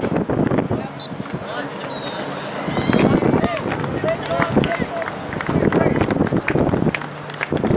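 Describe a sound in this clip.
Young players shout to each other across an open field in the distance.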